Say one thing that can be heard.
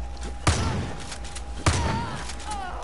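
Two loud gunshots ring out in quick succession.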